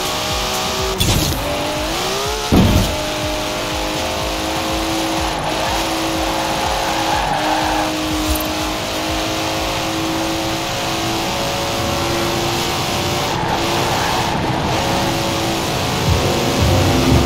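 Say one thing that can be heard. A car engine roars at high speed, shifting gears.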